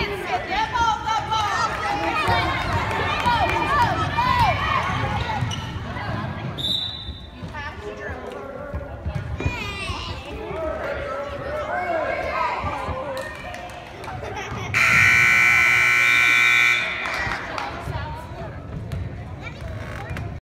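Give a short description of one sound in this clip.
A crowd cheers and shouts loudly in a large echoing gym.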